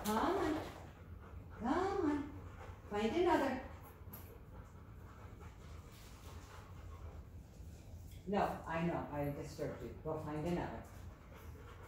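A young woman gives a dog commands in a high, sing-song voice.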